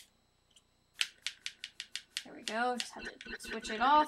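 Short electronic menu clicks tick in quick succession.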